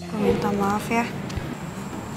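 A young woman speaks with concern, close by.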